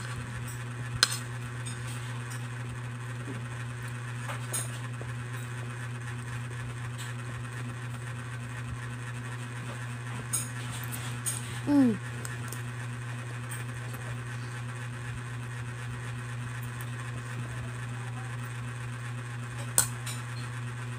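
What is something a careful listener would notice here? Forks clink and scrape against a plate.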